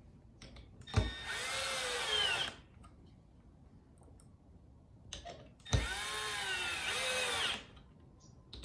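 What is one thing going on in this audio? A cordless drill whirs in short bursts, driving screws into wood.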